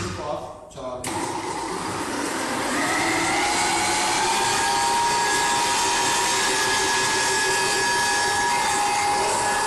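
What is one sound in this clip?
An electric stand mixer starts and whirs steadily.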